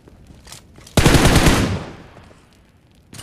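A fire bursts up and roars loudly.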